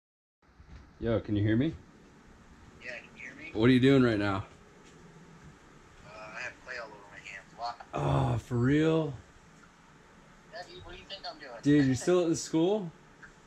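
A young man talks on a phone close by, with animation.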